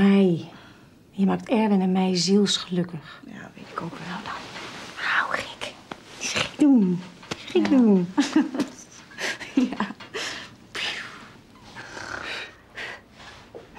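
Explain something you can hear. A woman speaks warmly and with emotion, close by.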